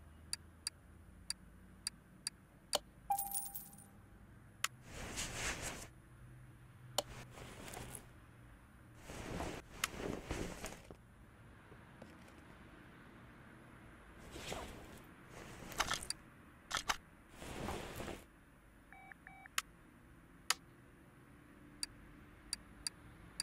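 Short interface clicks tick as menu items are chosen.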